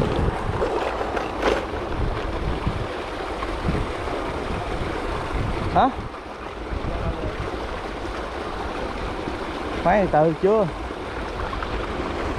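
Water laps softly against the hull of a moving boat.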